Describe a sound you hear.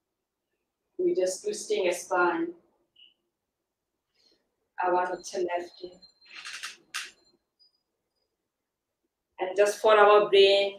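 A young woman speaks calmly and clearly into a nearby microphone, pausing now and then.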